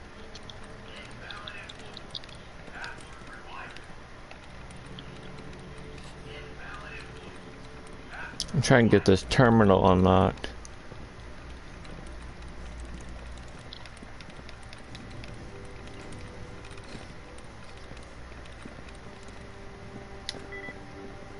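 A computer terminal clicks and blips softly.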